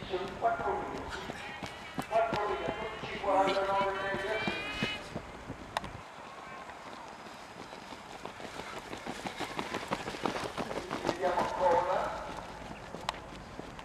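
Running shoes patter on a track.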